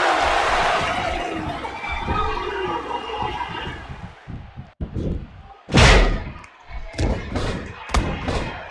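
A large crowd roars and cheers in a big arena.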